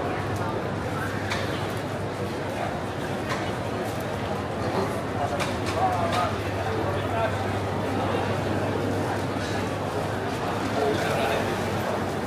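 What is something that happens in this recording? Footsteps shuffle on a hard floor close by.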